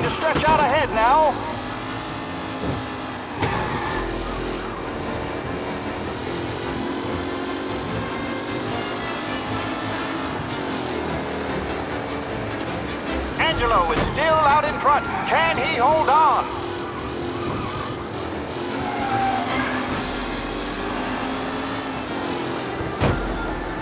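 A vintage race car engine drones steadily at speed.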